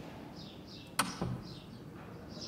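A door clicks shut.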